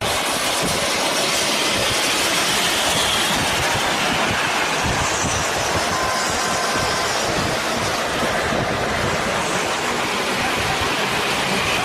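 A tipped-over trailer scrapes along the road.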